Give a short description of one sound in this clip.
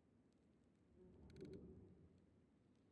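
A young man speaks briefly and quietly into a close microphone.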